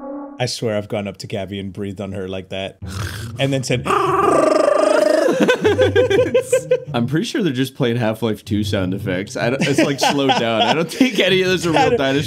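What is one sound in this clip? A second young man laughs loudly.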